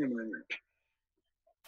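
An elderly man speaks briefly and calmly into a microphone.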